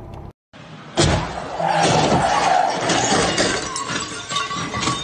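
Tyres screech as a car spins its wheels.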